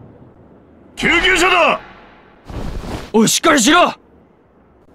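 A man shouts urgently and hoarsely, close by.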